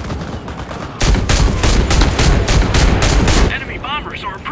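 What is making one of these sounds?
A submachine gun fires rapid full-auto bursts.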